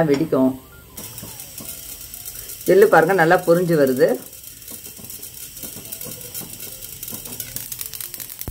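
Seeds sizzle and crackle in a hot pan.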